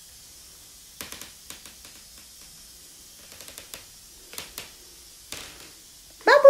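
A baby's hands tap and rub an apple, making soft little knocks.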